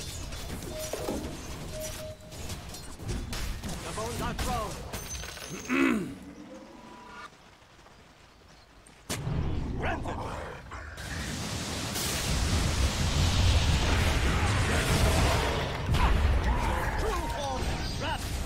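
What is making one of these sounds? Game effects crackle and whoosh with spells and blows.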